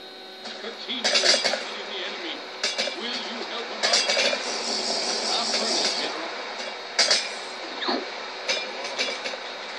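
Thuds and splashes of hits come through a television speaker.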